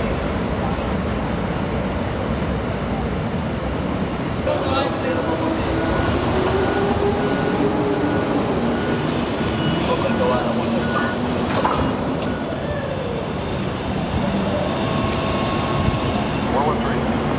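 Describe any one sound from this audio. Traffic roars steadily on a busy road outdoors.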